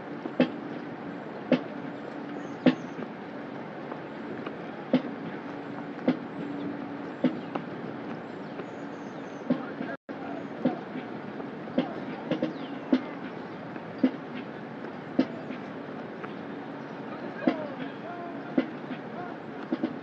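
Boots stomp in unison on pavement at a steady marching beat outdoors.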